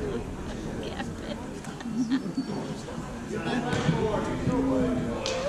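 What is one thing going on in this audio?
Spectators chatter nearby in a large echoing gym.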